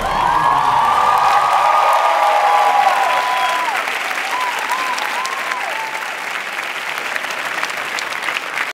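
A large crowd cheers and screams loudly.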